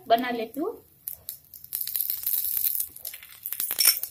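A spoon clinks against a pan.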